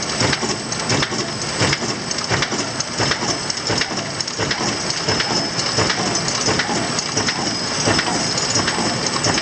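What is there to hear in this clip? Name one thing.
A paper folding machine clacks in a steady rhythm.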